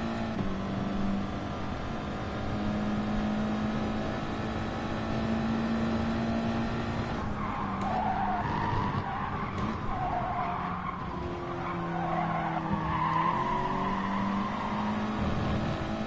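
A racing car engine roars steadily at high revs, then drops in pitch as the car slows.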